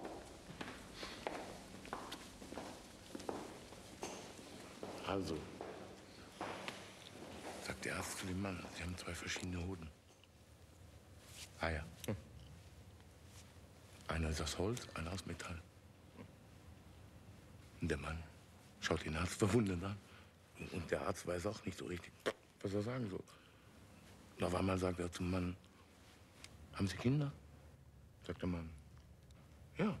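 A man speaks quietly and intently, close by.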